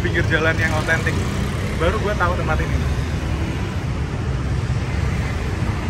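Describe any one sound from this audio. Traffic rumbles steadily along a nearby road.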